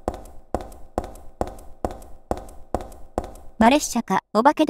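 Footsteps run hard across a concrete floor.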